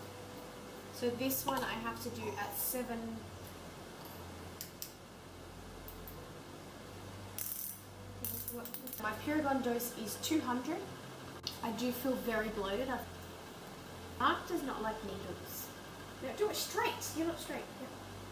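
A woman talks calmly, close by, as if to a listener.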